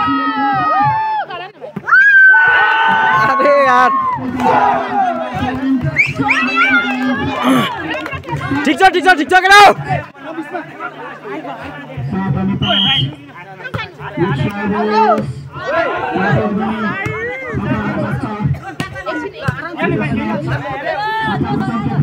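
A volleyball is struck hard with a smack.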